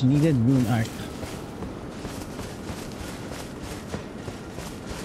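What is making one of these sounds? Footsteps rustle through grass.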